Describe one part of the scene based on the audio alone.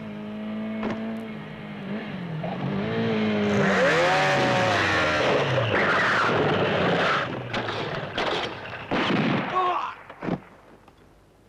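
A motorcycle engine revs loudly and roars past.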